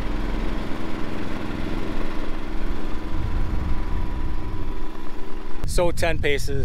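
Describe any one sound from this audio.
A portable generator hums steadily close by.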